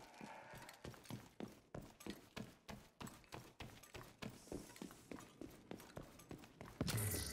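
Heavy footsteps run quickly on a hard floor.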